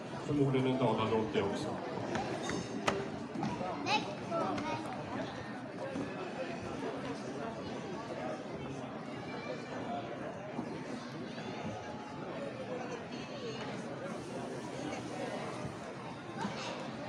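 A band plays live music in a large echoing hall.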